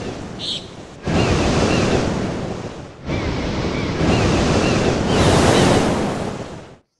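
Waves wash onto a sandy beach with a steady rushing roar.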